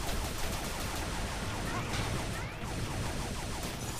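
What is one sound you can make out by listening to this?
Explosions boom as missiles hit the ground.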